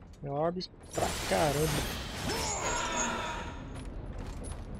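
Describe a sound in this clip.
A magic blast bursts with a loud whoosh.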